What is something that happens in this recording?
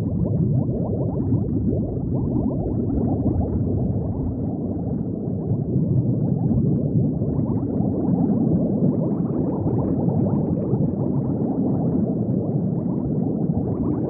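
Bubbles gurgle and burble steadily underwater.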